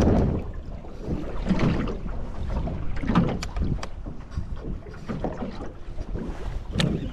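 Water slaps and splashes against the side of a boat.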